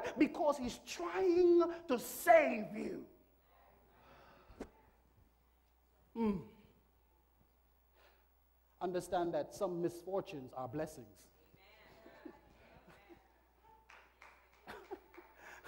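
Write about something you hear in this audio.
A man preaches with animation into a microphone, his voice echoing in a large room.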